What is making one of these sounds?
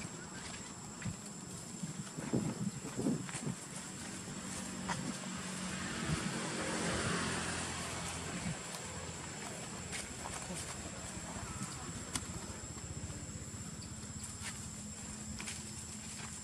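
Small monkeys scamper over dry leaves and dirt.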